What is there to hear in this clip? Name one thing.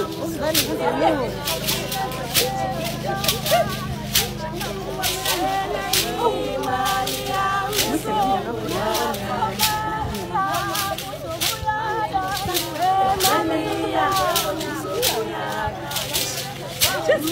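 Hands clap in a steady rhythm.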